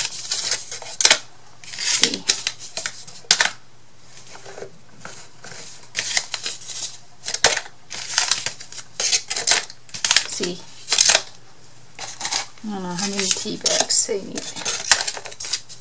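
Stiff cards slide and tap against the sides of a small wooden box.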